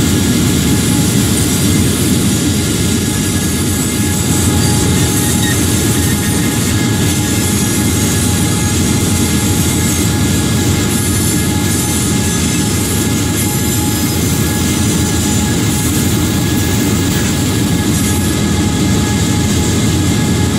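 A diesel locomotive engine rumbles steadily close by.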